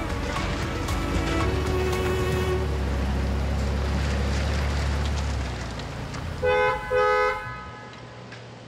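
A car engine hums as the car drives slowly past.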